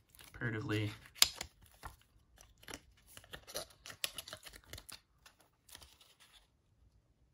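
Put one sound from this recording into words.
Cardboard card boxes rub and tap together in hands.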